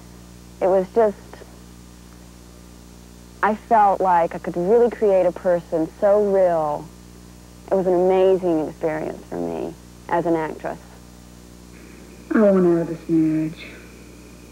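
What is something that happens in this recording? A young woman speaks quietly and earnestly, close by.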